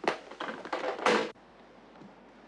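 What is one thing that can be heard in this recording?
A telephone handset clatters down onto its cradle.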